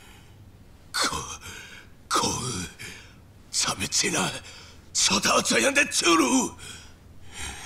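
A middle-aged man shouts angrily.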